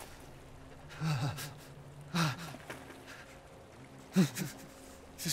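Small waves wash and fizz softly on the shore.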